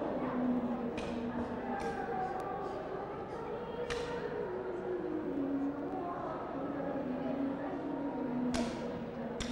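Wooden sticks clack sharply together.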